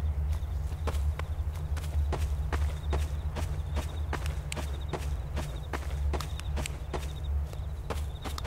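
Footsteps crunch steadily on dry dirt.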